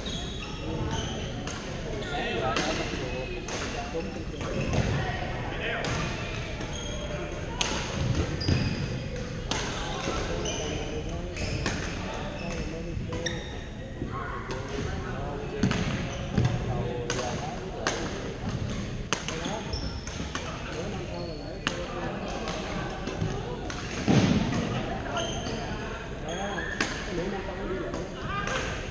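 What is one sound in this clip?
Men call out and chatter across the echoing hall.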